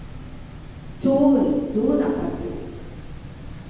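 A woman speaks through a loudspeaker in a large echoing hall.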